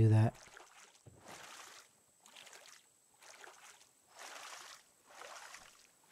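A paddle splashes softly in water.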